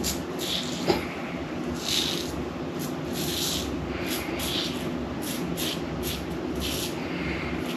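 A razor scrapes across stubble in short, repeated strokes.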